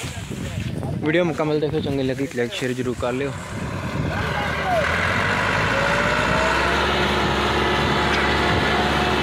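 A tractor engine idles with a steady, low rumble.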